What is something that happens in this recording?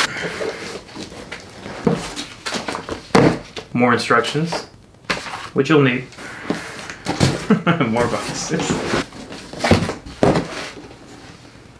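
Cardboard boxes thud and scrape on a wooden table.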